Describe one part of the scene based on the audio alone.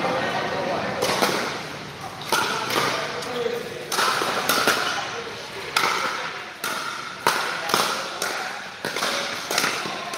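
Paddles strike a plastic ball back and forth with sharp pops that echo in a large hall.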